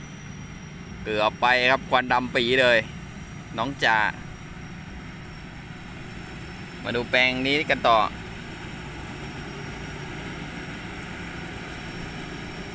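A combine harvester engine hums steadily in the distance.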